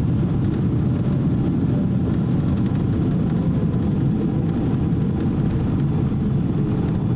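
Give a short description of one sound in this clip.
A jet airliner's engines roar loudly.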